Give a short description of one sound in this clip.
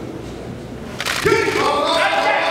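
Two wrestlers slam into each other with a thud.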